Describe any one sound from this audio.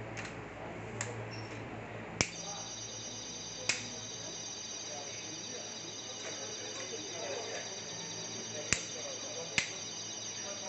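Tripod legs and clamps click and knock.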